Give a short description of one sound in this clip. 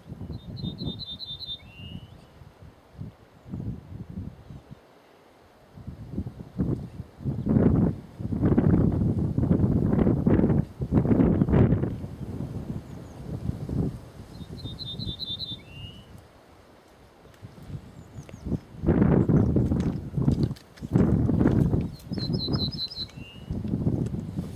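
A small bird sings a short, high, trilling song, repeated a few times.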